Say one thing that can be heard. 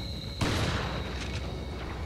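A shotgun fires with a loud blast that rings out and fades.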